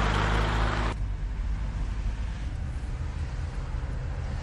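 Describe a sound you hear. A car engine rumbles low, heard from inside the car.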